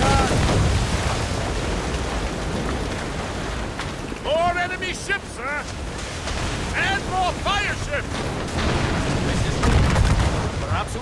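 Wind rushes and waves wash steadily.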